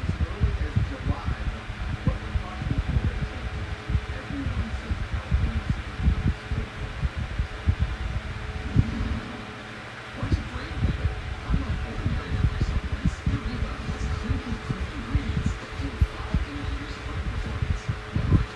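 A small electric fan whirs steadily.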